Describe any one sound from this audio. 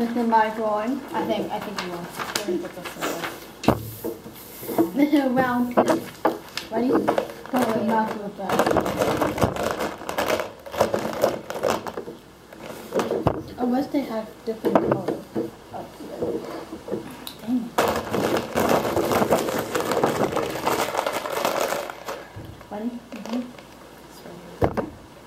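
A girl talks and laughs with animation close by.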